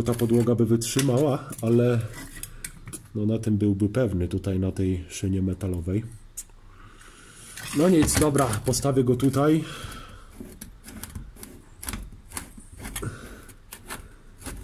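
A metal jack clicks and rattles as its screw is turned by hand.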